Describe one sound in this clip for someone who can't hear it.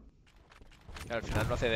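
A second man speaks excitedly into a headset microphone.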